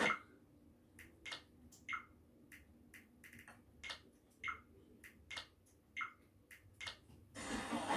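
Short menu clicks sound from a television speaker.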